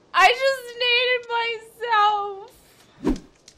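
A young woman laughs and sings playfully into a close microphone.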